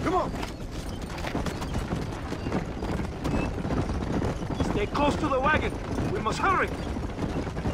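Wagon wheels rumble and rattle on a dirt track.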